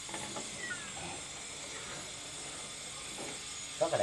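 Soda pours and fizzes into a jar.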